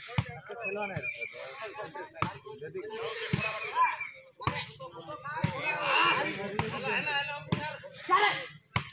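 A ball is kicked back and forth with sharp thuds.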